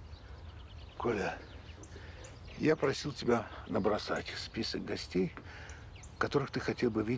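A middle-aged man speaks nearby with rising agitation.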